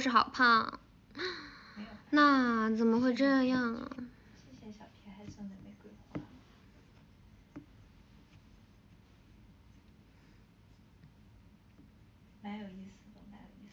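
A young woman speaks softly and playfully, close to a microphone.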